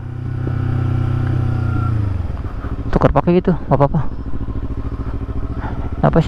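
A motorcycle engine hums close by, then drops back to a low idling putter.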